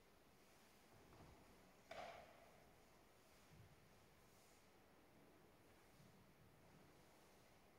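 A man speaks softly, far off in a large echoing hall.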